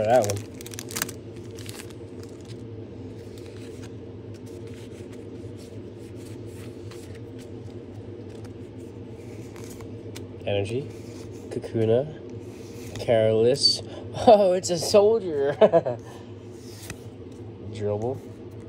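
Trading cards rustle and flick as hands shuffle through them.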